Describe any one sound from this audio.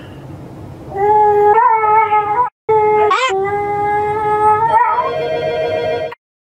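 A small dog howls in long, tuneful notes.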